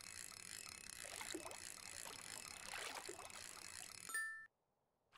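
A fishing reel whirs as a line is wound in.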